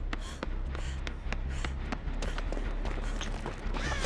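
Footsteps run quickly across a hard floor.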